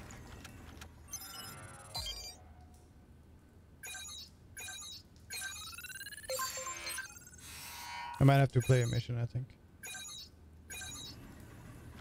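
Short electronic menu chimes and swooshes play.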